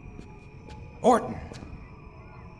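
A man shouts out loudly once.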